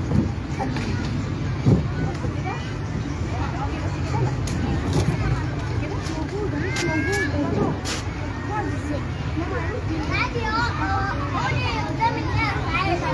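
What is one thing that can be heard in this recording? A woman speaks to the children through a microphone.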